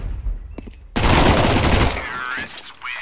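A pistol fires several rapid, loud shots.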